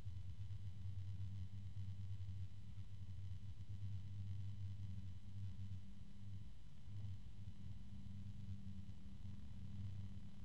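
An electric plasma disc hums with a low, steady buzz.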